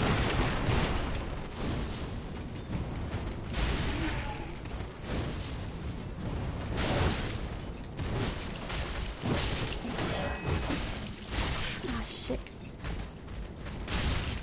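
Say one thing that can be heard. Swords clash and swish in a fight.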